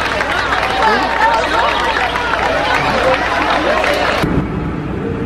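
Debris rumbles as a building comes down.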